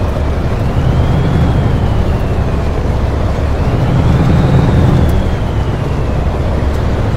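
A heavy truck engine rumbles and revs up and down.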